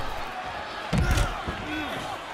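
A heavy body slams onto a hard floor with a thud.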